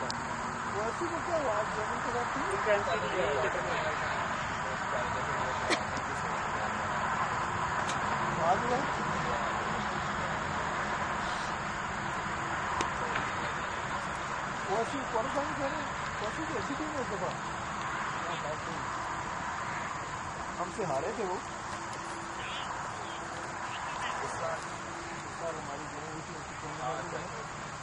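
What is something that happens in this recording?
Men call out and chat at a distance outdoors.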